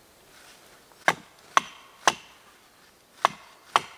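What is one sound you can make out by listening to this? A wooden stake is knocked into the ground with sharp thuds.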